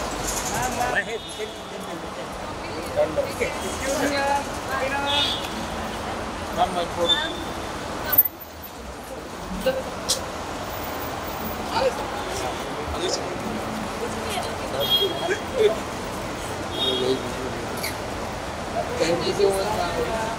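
Several men and women talk and call out nearby in a lively crowd.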